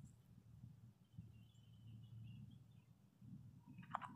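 A squirrel nibbles and crunches on nuts close by.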